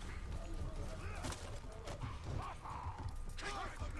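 A warrior leaps down and lands with a thud on stone.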